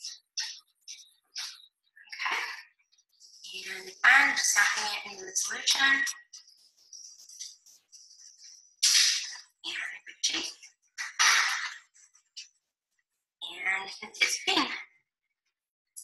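A woman speaks calmly and explains, close by.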